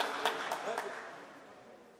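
A ball is kicked with sharp thuds in an echoing hall.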